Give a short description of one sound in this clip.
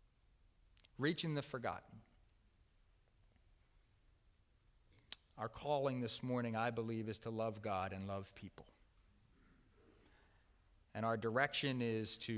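A middle-aged man speaks calmly through a microphone in a large room, with pauses between phrases.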